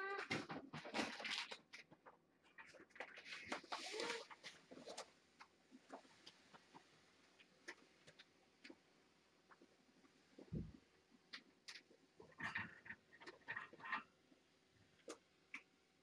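A kitten scrabbles and shuffles on a carpeted perch.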